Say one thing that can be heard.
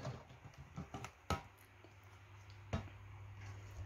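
Plastic clicks and knocks as a toy is handled.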